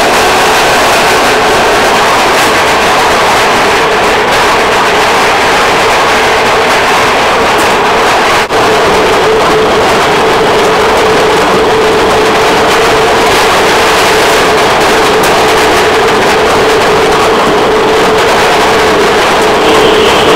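Golf balls roll and clatter against each other.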